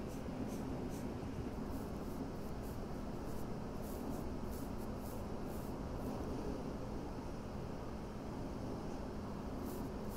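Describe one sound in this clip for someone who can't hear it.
A pencil lightly scratches across skin in short strokes.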